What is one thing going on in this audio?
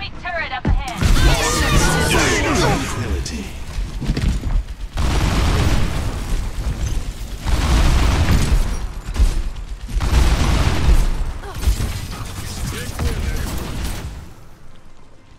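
Video game gunfire and blasts crackle.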